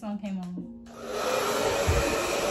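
A hair dryer blows with a loud rushing whir.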